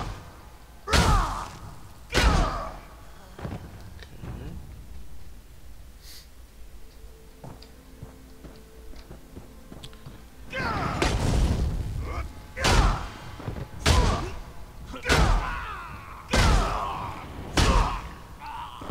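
Heavy weapon blows and magic blasts strike with loud, sudden bursts.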